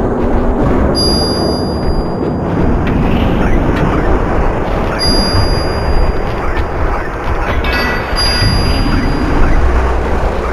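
Bright game chimes sound now and then.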